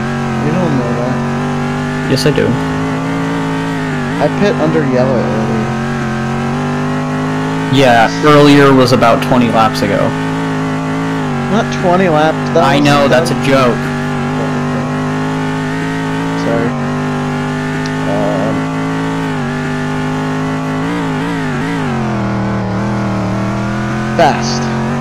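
A racing car engine hums steadily at high revs, its pitch dipping and rising with gear changes.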